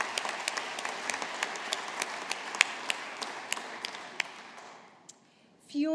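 An audience applauds in a large hall, then the clapping fades.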